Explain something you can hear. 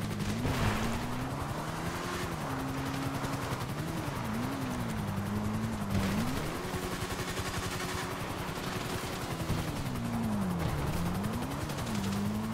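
A motorbike engine revs and hums steadily, rising and falling in pitch.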